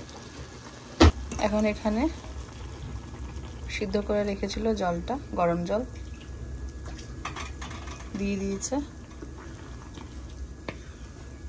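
Water pours into a pan.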